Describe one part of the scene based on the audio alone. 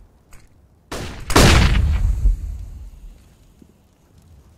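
A loud bang bursts and rings out.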